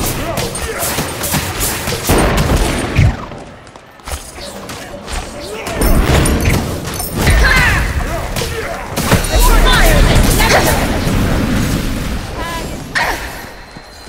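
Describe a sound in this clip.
Magic blasts burst and crackle in quick bursts.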